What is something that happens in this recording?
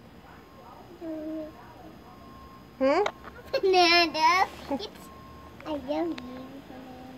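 A toddler girl babbles and squeals close by.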